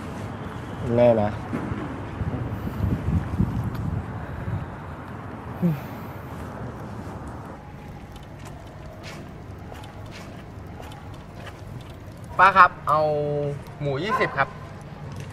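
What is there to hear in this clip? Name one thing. A teenage boy speaks calmly close by.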